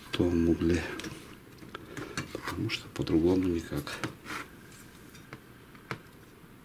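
Plastic and metal parts click and rattle as they are handled.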